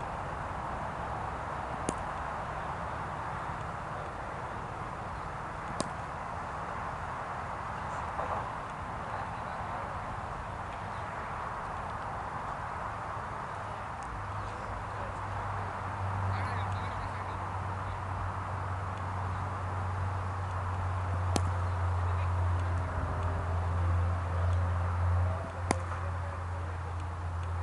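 Men talk faintly in the distance outdoors.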